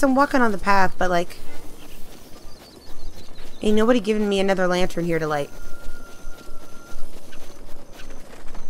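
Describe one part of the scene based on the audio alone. Light footsteps run across grass.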